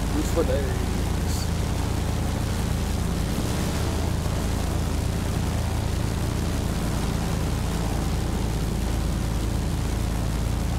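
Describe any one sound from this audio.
Twin propeller engines drone steadily with a low, throbbing hum.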